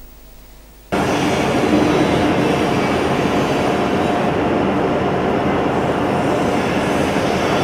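A large machine whirs and rumbles steadily, loud and close.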